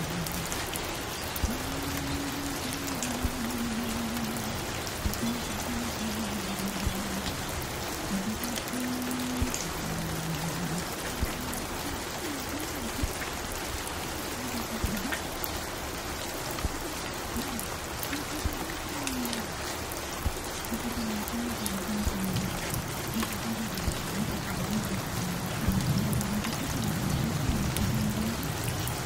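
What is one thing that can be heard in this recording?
A vinyl record crackles and hisses on a turntable.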